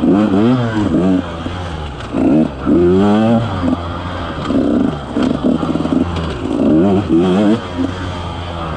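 A dirt bike engine revs up and down in bursts, close by.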